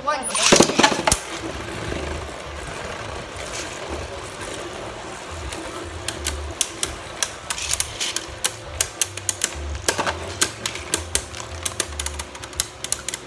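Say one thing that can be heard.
Spinning tops whir and clack against each other and the plastic walls of an arena.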